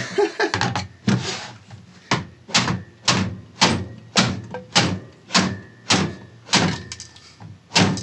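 A hammer knocks repeatedly on hard plastic.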